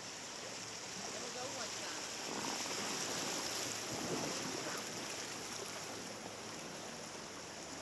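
Rapids rush loudly nearby.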